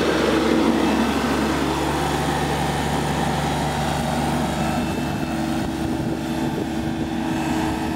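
A mower drives off across grass, its engine sound fading slightly.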